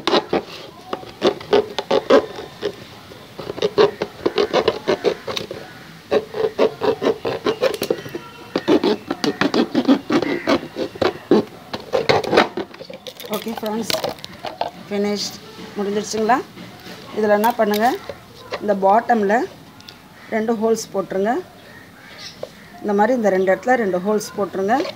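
A knife crunches and scrapes through thin plastic.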